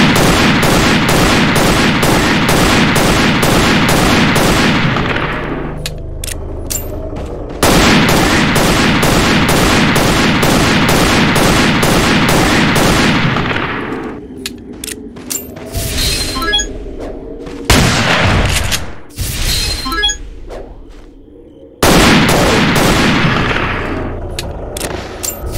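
A submachine gun fires long, rapid bursts.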